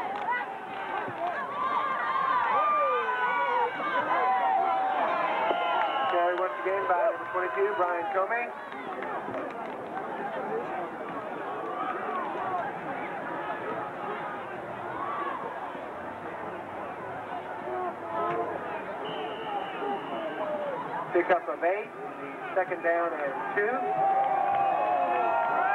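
A large crowd cheers and chatters outdoors.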